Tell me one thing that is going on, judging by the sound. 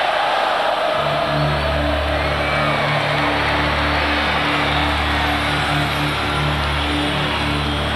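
Music with a deep throbbing beat plays loudly through big loudspeakers.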